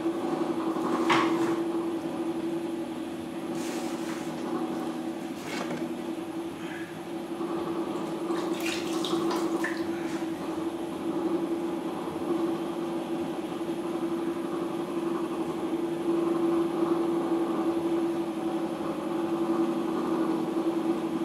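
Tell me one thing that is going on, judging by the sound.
Clay scrapes and squelches under a tool.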